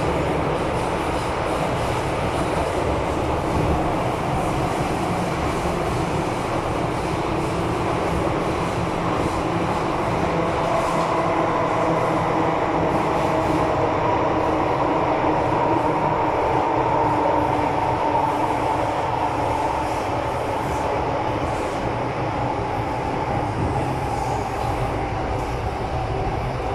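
A train rumbles and whines steadily along the track, heard from inside a carriage.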